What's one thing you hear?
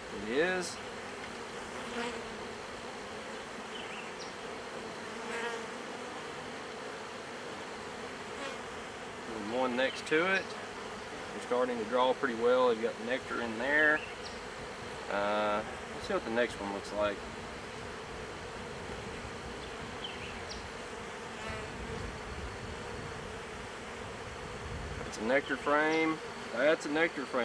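Wooden hive frames scrape and knock as they are lifted out.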